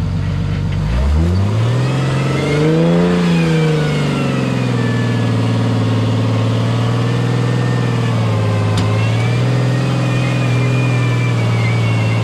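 Tyres grind and scrape over rock.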